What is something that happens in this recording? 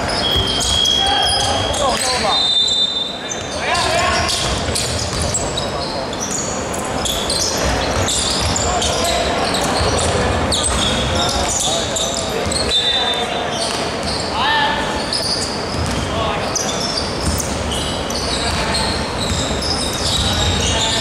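Sneakers squeak on a hardwood floor in a large echoing hall.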